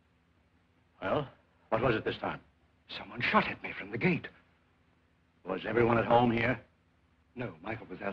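Elderly men talk tensely in a quiet room, heard through an old film soundtrack.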